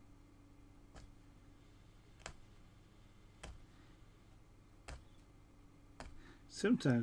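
A punch needle pokes through taut fabric with soft clicks.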